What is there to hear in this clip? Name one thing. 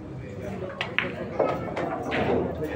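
Billiard balls knock against each other.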